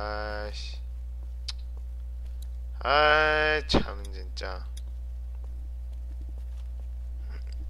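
Footsteps walk on pavement.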